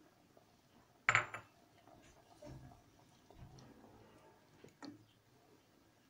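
A wooden spoon stirs liquid in a metal pot.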